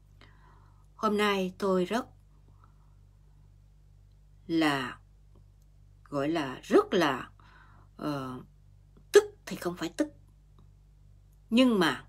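A middle-aged woman speaks calmly and close to a microphone, with pauses between phrases.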